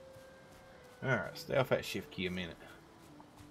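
A middle-aged man speaks briefly and casually into a microphone.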